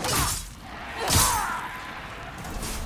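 A blade clangs hard against metal with a ringing crash.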